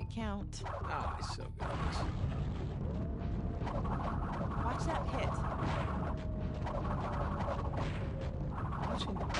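Video game sound effects play through a television speaker.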